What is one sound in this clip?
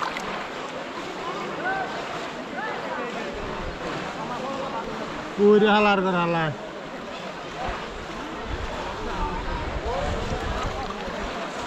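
Water sloshes as hands grope through it.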